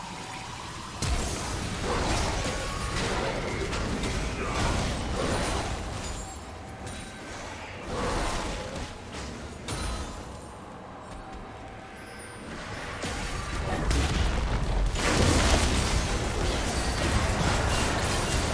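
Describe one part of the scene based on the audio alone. Game spell effects blast and crackle in bursts during a fight.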